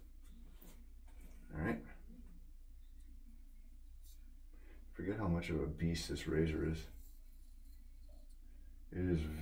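A razor scrapes across stubble and shaving foam.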